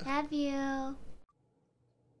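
A young girl speaks in a sing-song voice close by.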